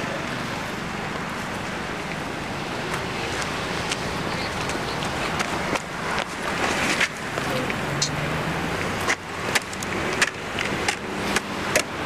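Cars drive past on a street nearby.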